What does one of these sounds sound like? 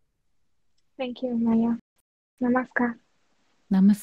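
A young woman speaks warmly in greeting through an online call.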